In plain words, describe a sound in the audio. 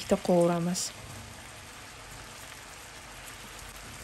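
Chopped onion drops into a hot pan with a soft patter.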